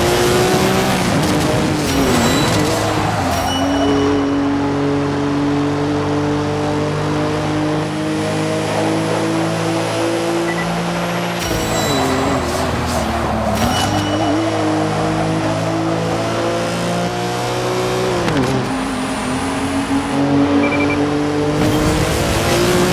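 A powerful car engine roars loudly, its pitch dropping and climbing again with each gear change.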